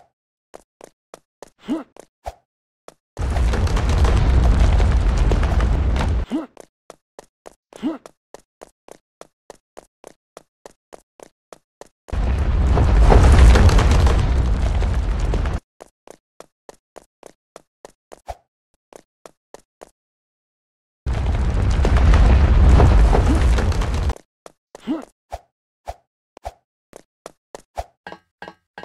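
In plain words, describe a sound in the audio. Quick footsteps patter steadily.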